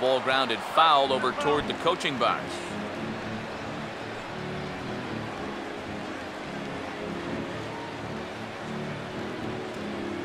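A large crowd cheers and murmurs.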